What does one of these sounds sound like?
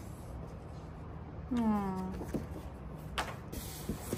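A sheet of card rustles in a hand.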